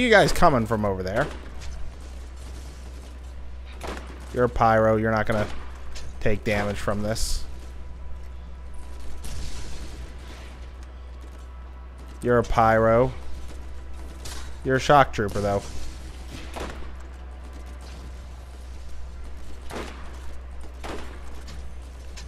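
A sniper rifle fires loud shots.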